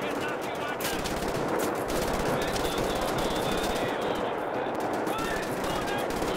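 A heavy machine gun fires in a rapid, relentless stream.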